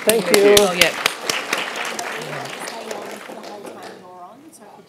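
An audience applauds and cheers, then the applause fades.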